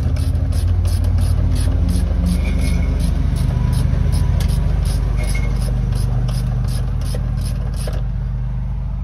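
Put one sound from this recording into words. A metal lever clicks and rattles rapidly.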